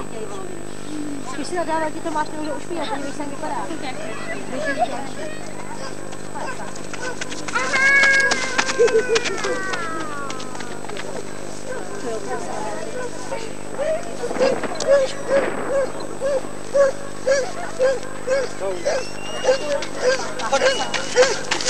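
Spectators talk and call out outdoors.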